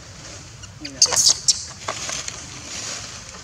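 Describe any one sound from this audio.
Monkeys screech loudly during a scuffle.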